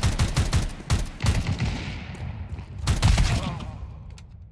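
Pistol shots fire in rapid bursts, ringing off hard walls.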